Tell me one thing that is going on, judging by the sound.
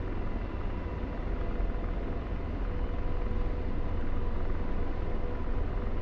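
A jet engine rumbles steadily.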